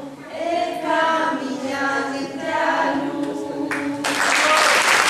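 A group of young people sing together.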